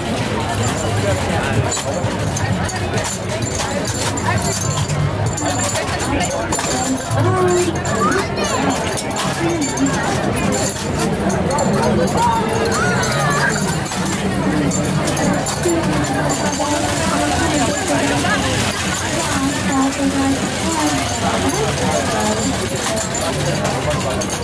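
A crowd of men, women and children chatters all around outdoors.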